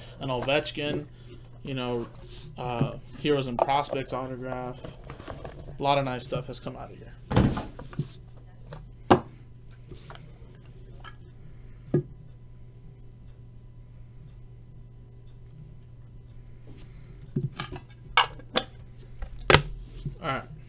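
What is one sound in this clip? Plastic cases click and tap as hands handle them.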